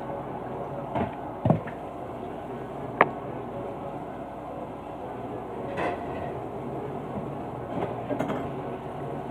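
Dishes clink and clatter against each other.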